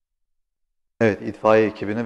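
A man speaks calmly and clearly into a microphone.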